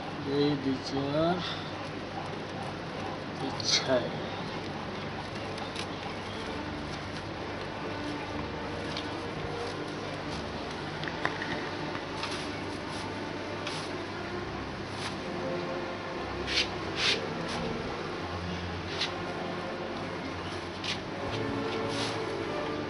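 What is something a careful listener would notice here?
Dry rope rustles and creaks as hands weave it through a frame.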